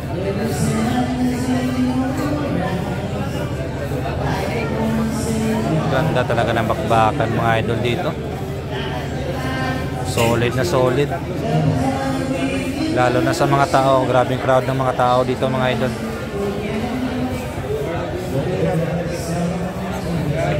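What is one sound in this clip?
A crowd of young men chatters and murmurs nearby.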